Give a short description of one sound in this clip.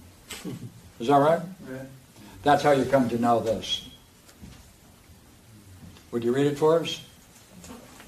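An elderly man lectures with animation, close by.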